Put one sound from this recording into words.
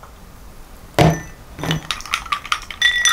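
A glass clinks on a hard surface.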